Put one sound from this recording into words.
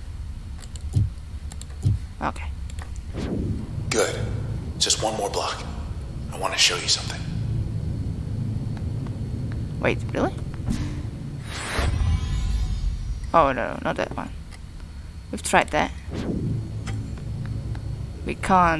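Electronic menu tones chime and whoosh.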